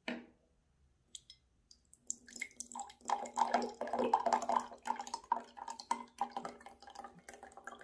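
Water pours from a plastic bottle into a glass with gurgling splashes.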